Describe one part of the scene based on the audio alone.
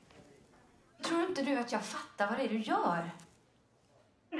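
A young woman speaks calmly into a telephone.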